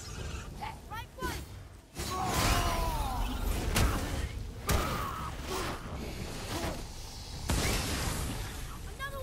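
Heavy blows thud and clash in a close fight.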